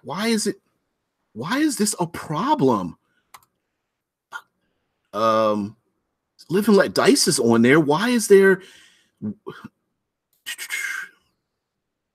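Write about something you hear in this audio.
A middle-aged man speaks calmly into a microphone over an online call, in short phrases with pauses.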